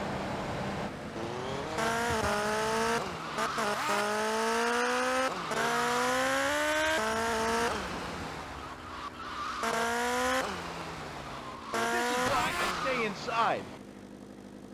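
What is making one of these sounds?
A motorcycle engine revs up and down, climbing through the gears.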